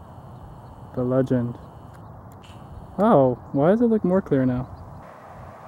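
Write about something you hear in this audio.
A man speaks outdoors.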